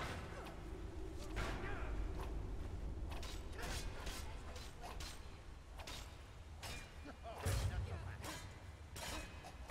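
Weapons clash and strike repeatedly in a close fight.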